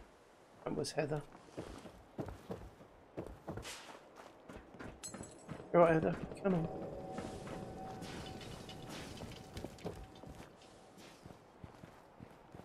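Footsteps thud and crunch on wooden boards and loose rubble.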